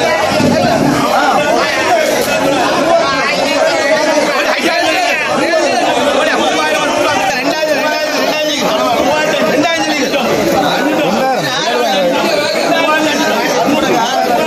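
A crowd of men talk loudly over one another close by.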